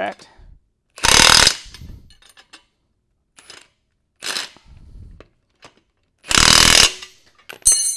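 An impact wrench whirs loudly in short bursts.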